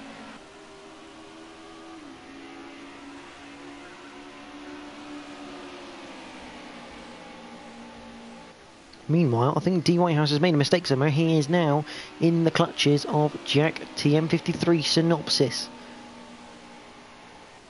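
Racing car engines drone steadily.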